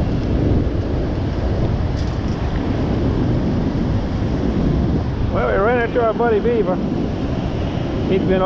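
Strong wind rumbles and buffets close by.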